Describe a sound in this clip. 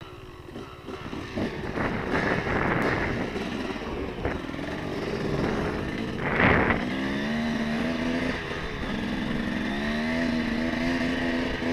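A dirt bike engine revs loudly close by.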